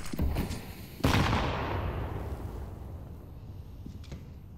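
A smoke grenade bursts open with a loud hiss that slowly fades.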